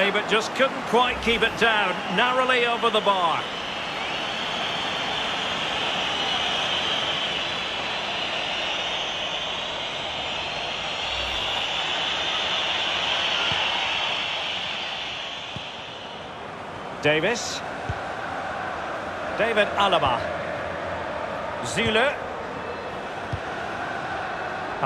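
A large stadium crowd roars and cheers, swelling and then settling.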